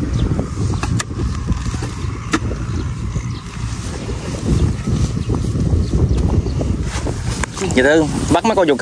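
A metal hoe chops and scrapes into damp soil.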